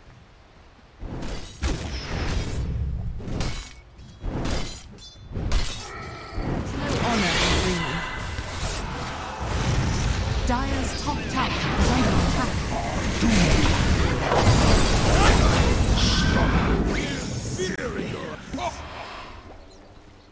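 Magic blasts, hits and explosions crash and crackle in a fast fight.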